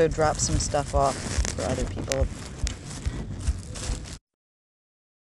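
Plastic bags and fabric rustle close by as hands rummage through them.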